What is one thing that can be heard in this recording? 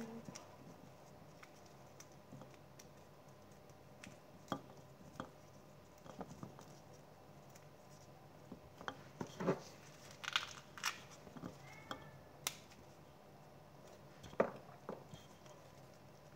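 Plastic gloves crinkle as hands knead food in a bowl.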